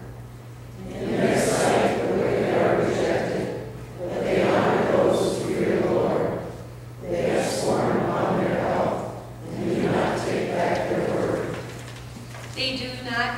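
A congregation reads aloud together in unison.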